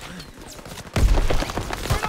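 A heavy explosion booms.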